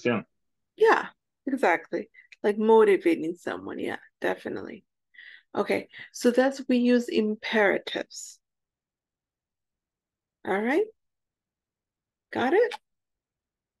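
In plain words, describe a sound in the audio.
A woman speaks calmly through an online call, explaining in short bursts.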